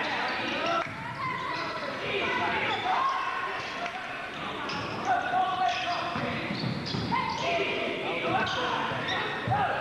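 A man shouts instructions from close by in an echoing hall.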